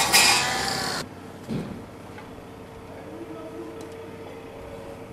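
Concrete blocks knock together as they are set down.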